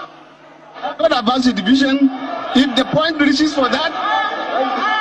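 A man speaks into a microphone in a large hall.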